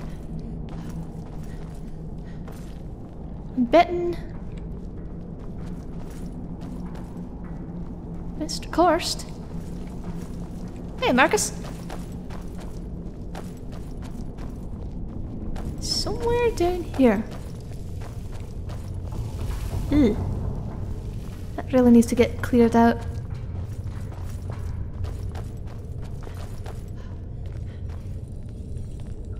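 Footsteps tread on stone floors.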